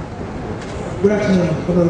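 A man speaks into a microphone, heard through loudspeakers in a room.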